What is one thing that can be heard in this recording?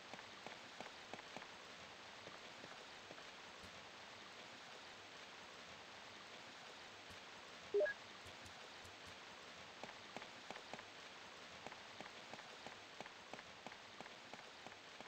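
Footsteps tap on a stone floor in an echoing corridor.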